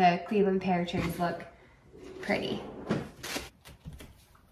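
Paper and cardboard rustle.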